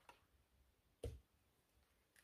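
A glass jar is set down on a tabletop with a soft knock.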